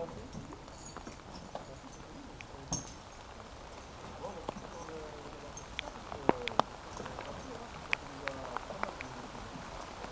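Metal climbing gear clinks softly on a rope.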